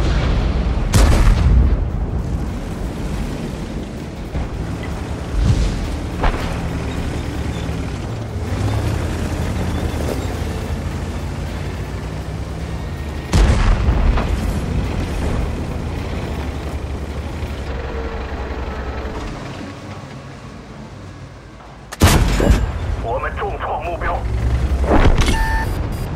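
Tank guns fire with loud booms.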